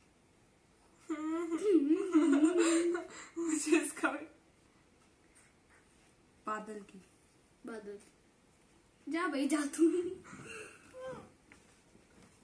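A teenage girl talks and laughs close by.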